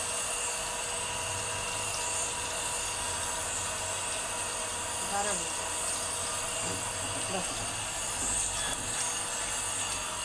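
Water runs from a tap and splashes over water balloons.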